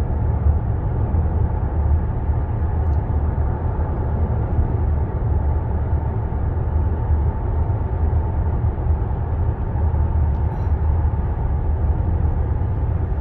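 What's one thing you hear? Tyres roar steadily on the road in a tunnel.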